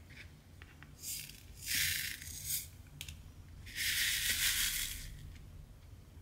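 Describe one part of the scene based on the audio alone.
Small plastic beads rattle and scrape as a hand sweeps them.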